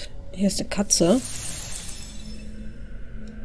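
A magical chime shimmers and sparkles.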